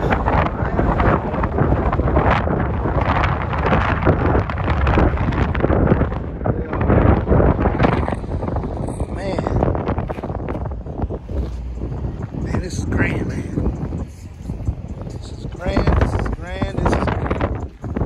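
Strong wind blows across the microphone outdoors.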